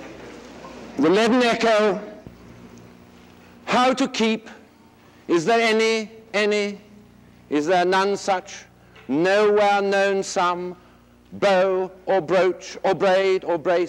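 An elderly man reads aloud in a large room.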